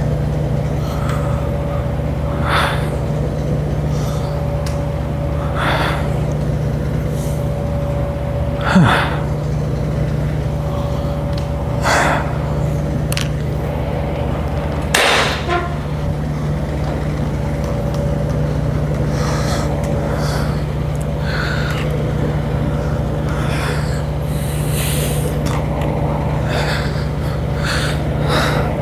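A cable machine rattles and its weights clink with each pull.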